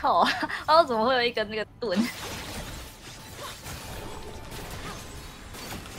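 Video game spell effects whoosh and crackle.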